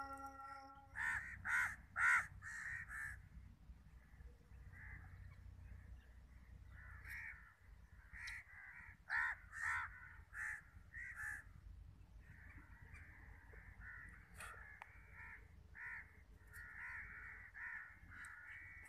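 A small bird chirps in short, sharp bursts, over and over.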